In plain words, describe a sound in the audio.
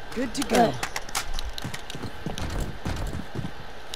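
A rifle clicks and rattles as it is handled.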